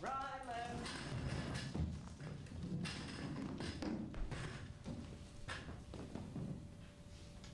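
Footsteps thud on a stage.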